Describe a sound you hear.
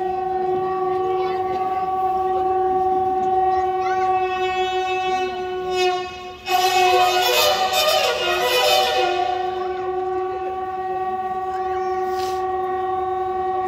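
A bugle holds a long, steady note.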